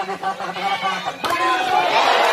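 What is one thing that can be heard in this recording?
A volleyball is spiked with a sharp smack.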